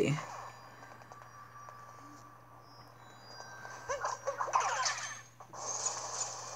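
Playful game music and sound effects chime and jingle.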